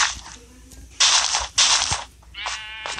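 A block breaks with a short crunching thud.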